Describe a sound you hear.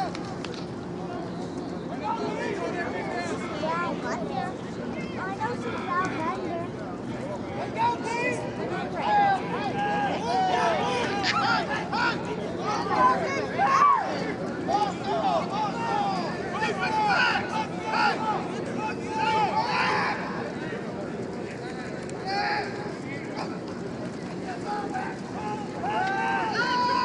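A crowd of young people talk and shout nearby outdoors.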